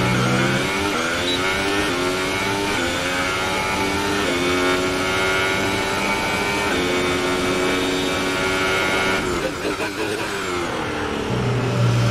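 A racing car engine screams at high revs, rising through gear shifts and dropping as the car brakes.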